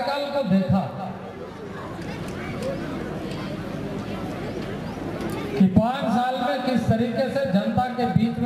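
A man speaks forcefully into a microphone over a loudspeaker.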